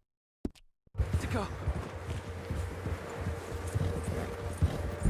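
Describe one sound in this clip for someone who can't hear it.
A horse gallops, hooves thudding on snow.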